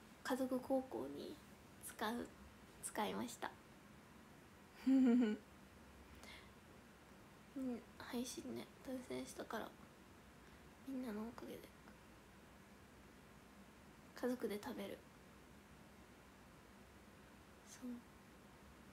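A young woman talks casually and close by, in short bursts with pauses.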